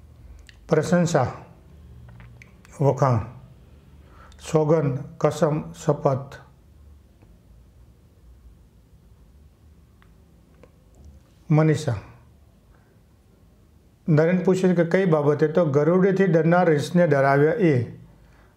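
A middle-aged man speaks calmly through a microphone, reading out in short phrases with pauses.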